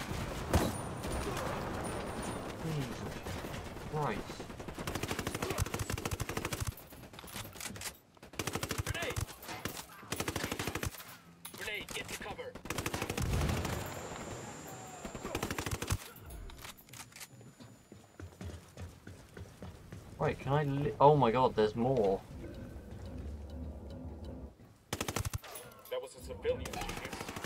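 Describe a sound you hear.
Automatic rifle fire crackles in bursts.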